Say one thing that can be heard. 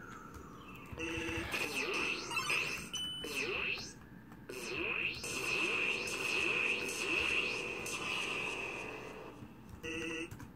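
Video game attack sounds blast and whoosh.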